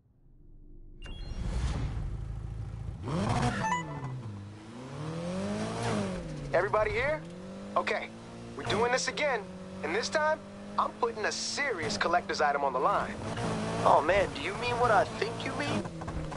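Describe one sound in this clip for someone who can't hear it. A car engine revs loudly, rising and falling in pitch as the gears change.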